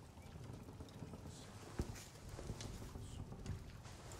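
Leather clothing creaks and rustles as a man crouches down.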